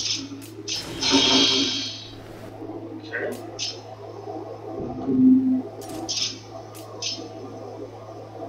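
Short electronic menu chimes sound as selections change.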